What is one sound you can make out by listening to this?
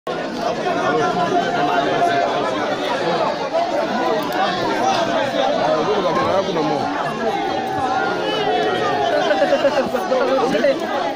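Many people talk and shout over one another in a crowd.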